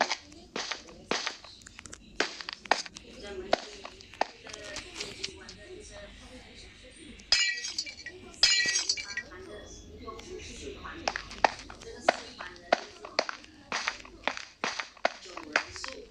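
Wooden blocks knock into place one after another in a video game.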